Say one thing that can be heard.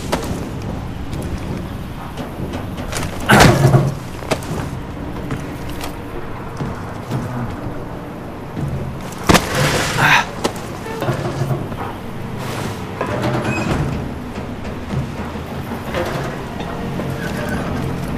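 Footsteps clank on metal grating and rungs.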